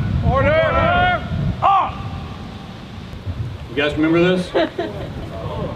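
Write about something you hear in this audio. A man shouts drawn-out commands loudly outdoors.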